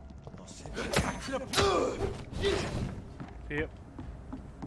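A sword swings and strikes with sharp clashes.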